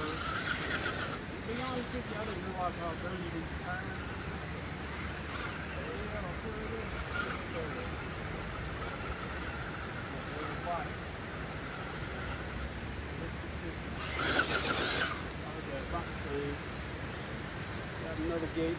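A small electric motor whirs as a toy car climbs.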